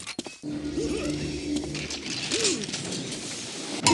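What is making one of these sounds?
A short electronic chime sounds as an item is picked up.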